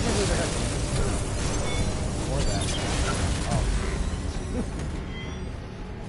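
Loud explosions roar and crackle.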